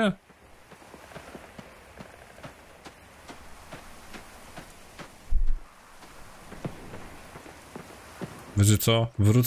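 Footsteps tread steadily through grass.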